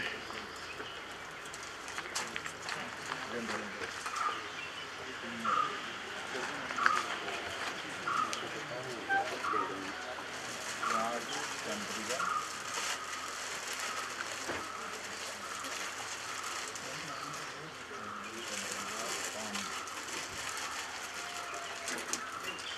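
A crowd of men and women murmur quietly outdoors.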